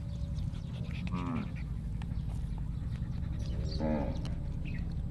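A puppy whimpers softly.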